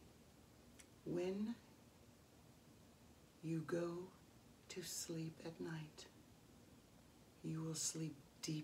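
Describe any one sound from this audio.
A woman speaks slowly and calmly close by, in short phrases with pauses.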